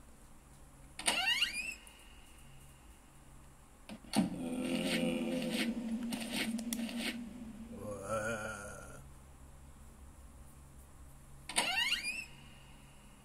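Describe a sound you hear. A wooden door creaks open, heard through a small phone speaker.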